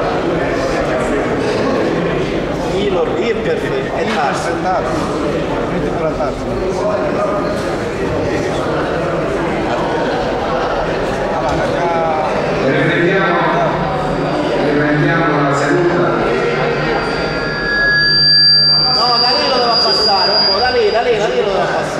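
A man speaks calmly into a microphone, heard through loudspeakers in a large echoing hall.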